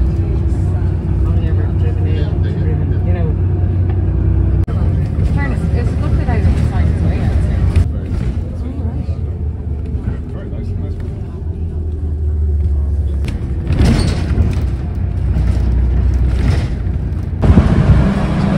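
A bus engine rumbles steadily from inside.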